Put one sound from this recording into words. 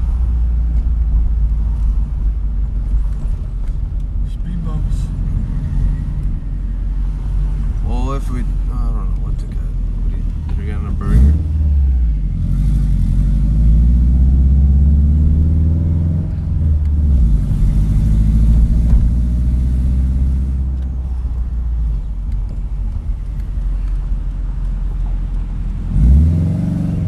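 A car engine hums steadily from inside the car, rising and falling in pitch as it speeds up and slows.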